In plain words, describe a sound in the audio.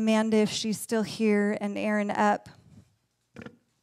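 A young woman speaks loudly and with animation through a microphone.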